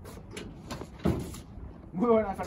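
A man knocks on a metal door.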